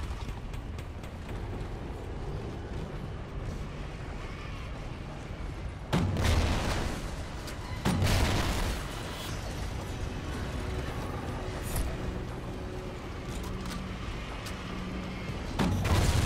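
Footsteps thud on wooden stairs and planks.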